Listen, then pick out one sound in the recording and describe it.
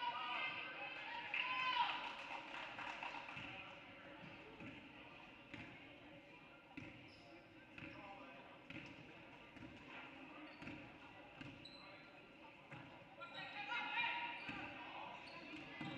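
Spectators in the stands shout and cheer.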